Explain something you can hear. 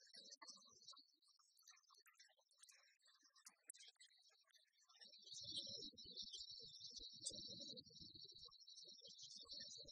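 Rackets strike a shuttlecock back and forth in a quick rally.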